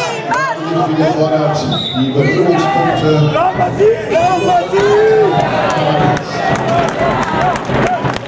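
Wrestling shoes squeak on a mat.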